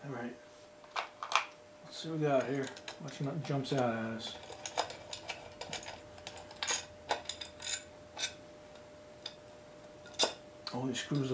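Small metal parts click and clink against each other.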